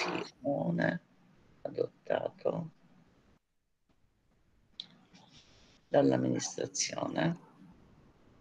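A middle-aged woman talks calmly over an online call.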